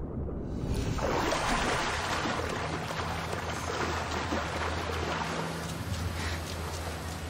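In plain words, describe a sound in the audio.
A swimmer splashes through water.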